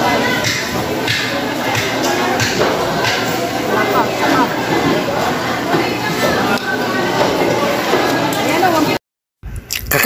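A busy crowd chatters in the background.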